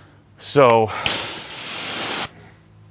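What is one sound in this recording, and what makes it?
A pressure washer sprays water with a loud hiss.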